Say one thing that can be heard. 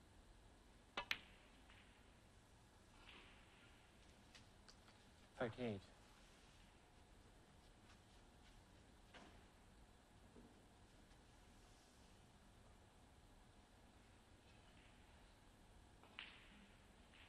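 A snooker cue tip strikes the cue ball.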